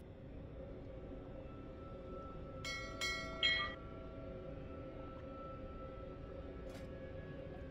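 A magic spell hums and shimmers with a steady ringing tone.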